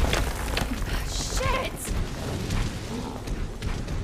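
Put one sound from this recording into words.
A young woman curses in alarm.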